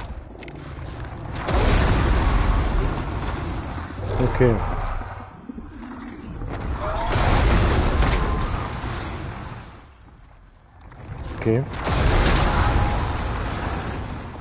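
A young man talks into a microphone.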